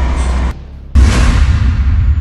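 A rocket launcher fires with a loud whoosh.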